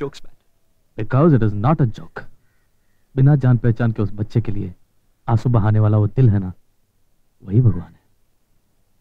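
A middle-aged man speaks gently and calmly, close by.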